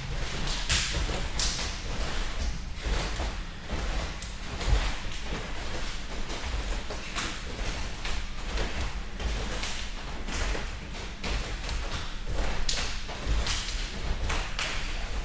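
Judo jackets rustle and snap as two people grip each other.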